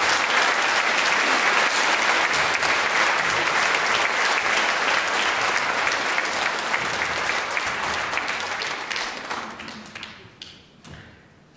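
An audience applauds loudly in a large echoing hall, then the applause fades.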